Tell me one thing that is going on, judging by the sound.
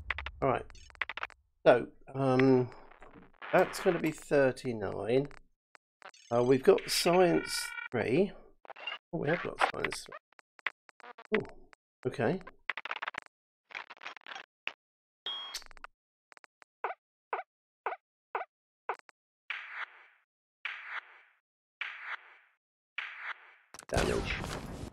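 Short game sound effects chime and blip as menu entries change.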